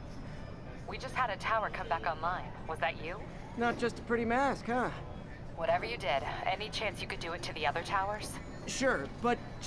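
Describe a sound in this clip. A young woman speaks calmly over a radio.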